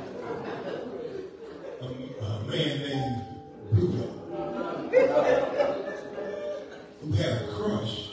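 A man preaches with animation into a microphone, heard over loudspeakers in a large echoing hall.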